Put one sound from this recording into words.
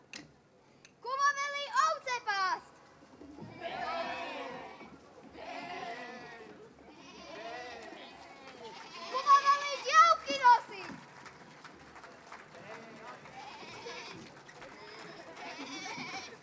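A group of children sings and shouts together in high voices.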